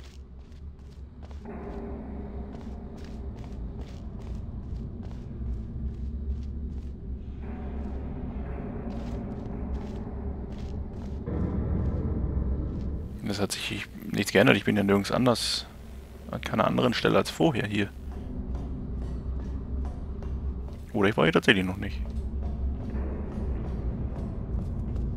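Footsteps clang on a metal floor at a steady walking pace.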